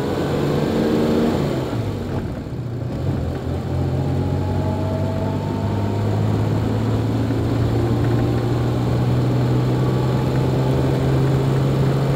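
Tyres roll over a rough country road.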